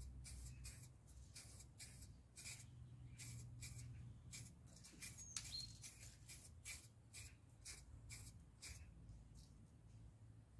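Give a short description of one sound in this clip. A hose nozzle sprays water in short hissing bursts.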